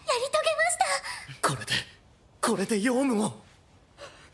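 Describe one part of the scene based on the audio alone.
A young woman speaks brightly through a headset microphone.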